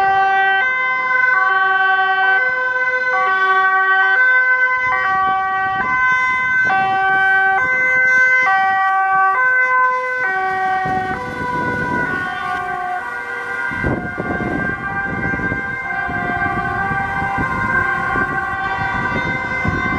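An ambulance siren wails in a fast two-tone pattern, dropping in pitch as it passes and moving away.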